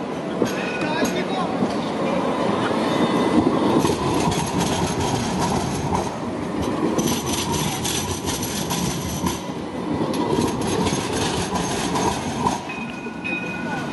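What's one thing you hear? A tram rolls past close by, rumbling and whirring.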